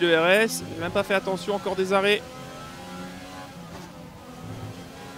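A racing car engine whines at high revs.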